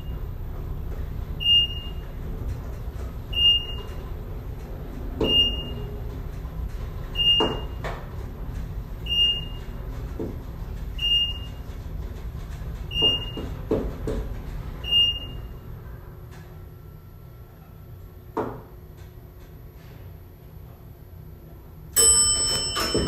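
An elevator hums and rumbles steadily as it moves.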